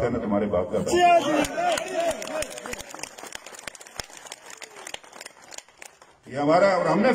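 An elderly man gives a speech through a microphone and loudspeakers, echoing outdoors.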